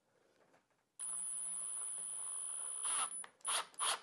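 A cordless drill whirs steadily, driving a screw into wood.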